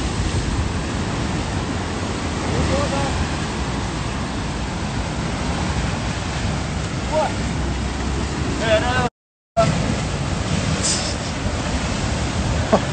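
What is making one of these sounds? Ocean surf crashes and churns against rocks.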